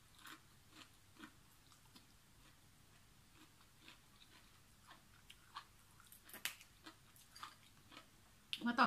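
A woman chews crunchy raw vegetables close by.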